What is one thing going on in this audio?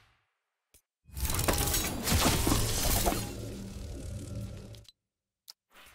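A glider whooshes and hums loudly.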